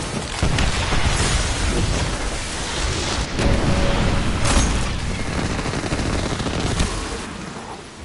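Gunfire and energy blasts boom and crackle loudly.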